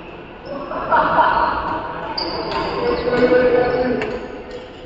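Young men call out and chatter across an echoing hall.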